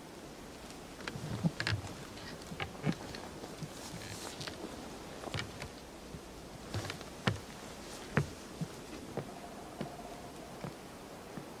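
Boots knock on wooden ladder rungs.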